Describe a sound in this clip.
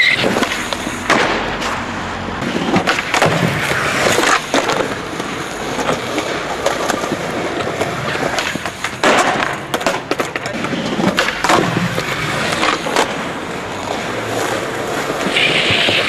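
Skateboard wheels roll roughly over pavement.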